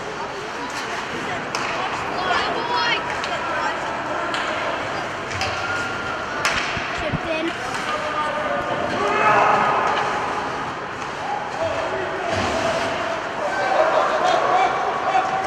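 Spectators murmur and call out.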